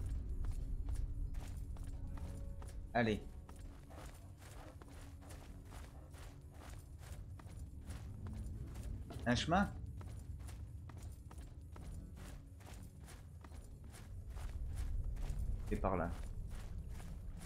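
Footsteps tread steadily on hard ground.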